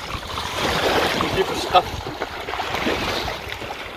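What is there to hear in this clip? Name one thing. Feet splash through shallow water.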